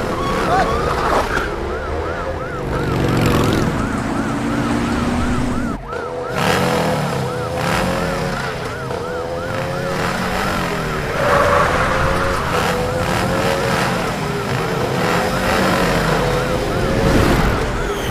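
A siren wails steadily, rising and falling quickly.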